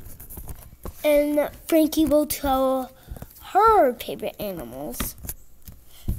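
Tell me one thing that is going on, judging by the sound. A young girl speaks and squeals playfully close by.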